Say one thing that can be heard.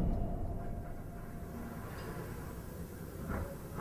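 A door opens softly.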